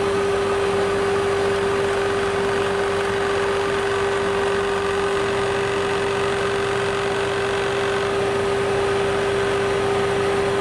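A cutting tool scrapes and hisses against a turning workpiece.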